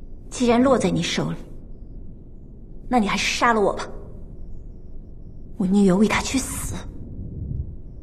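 A young woman speaks quietly and sadly nearby.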